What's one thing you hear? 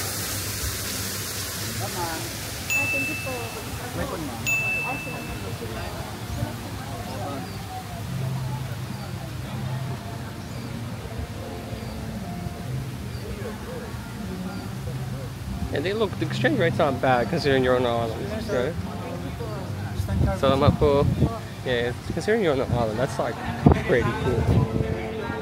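Men and women chat and call out nearby outdoors.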